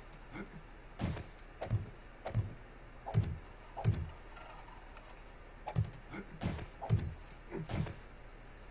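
Wooden frames knock into place with dull, repeated thuds.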